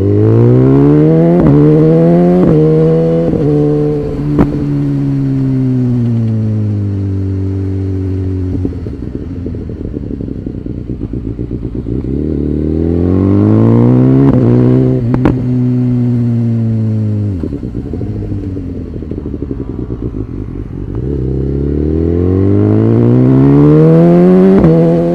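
A motorcycle engine revs up through the gears and winds down on the bends.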